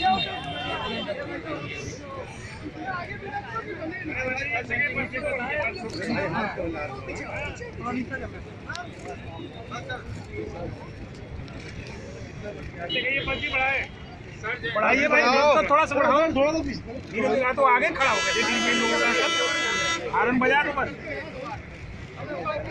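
A crowd of men talks and shouts excitedly close by, outdoors.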